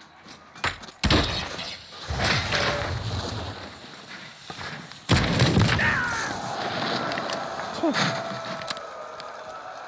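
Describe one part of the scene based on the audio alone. Loud gunshots and explosions boom and crack.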